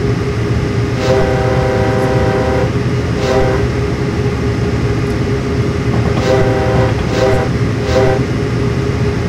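A locomotive horn sounds in several long blasts.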